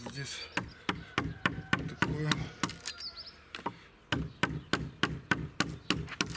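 A mallet strikes a chisel in quick, steady blows, cutting into wood.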